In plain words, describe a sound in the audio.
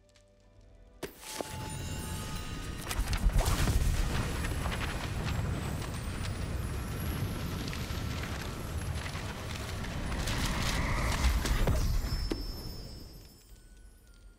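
Pages flutter and swirl in a loud magical rush.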